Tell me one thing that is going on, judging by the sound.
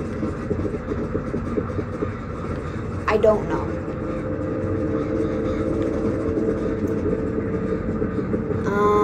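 Eerie game music plays steadily.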